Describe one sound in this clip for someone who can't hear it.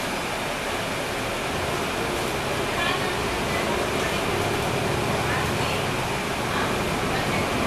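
The bus interior rattles and hums as it rolls over the street.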